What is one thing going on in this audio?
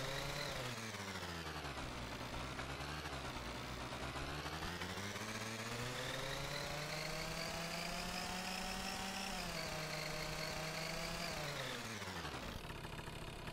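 A scooter engine hums, its pitch rising and falling as it speeds up and slows down.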